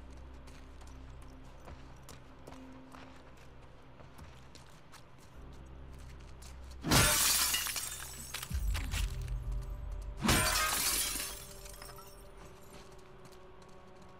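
Footsteps scuff softly on a hard floor.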